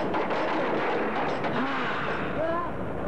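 A man shouts with a grimace.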